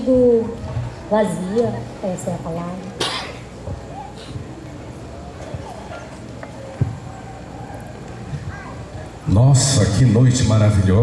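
A young girl sings through a microphone.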